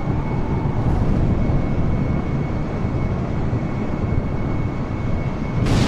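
A jet airliner's engines roar steadily as it flies.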